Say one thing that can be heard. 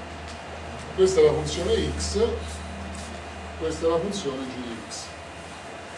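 An elderly man speaks calmly, as if lecturing.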